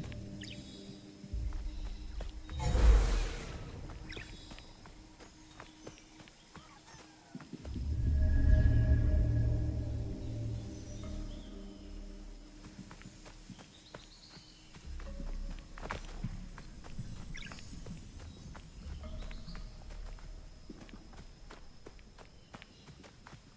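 Footsteps patter on soft ground.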